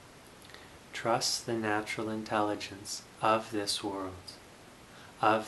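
A young man speaks calmly and slowly, close by.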